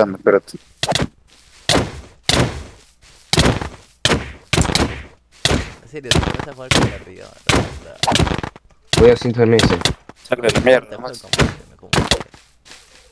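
Sword strikes land with sharp thuds, again and again.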